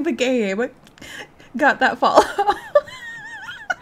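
A young woman talks and laughs excitedly close to a microphone.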